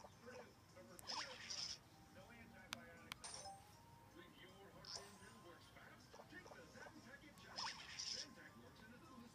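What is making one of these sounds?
A cartoon creature chirps happily through a small handheld speaker.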